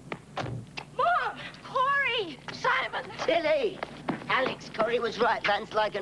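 A woman shouts excitedly outdoors.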